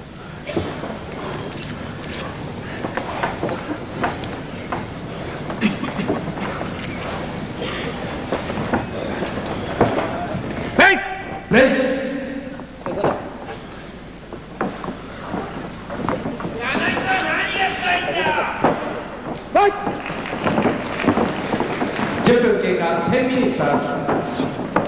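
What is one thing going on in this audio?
A crowd cheers and shouts throughout a large echoing hall.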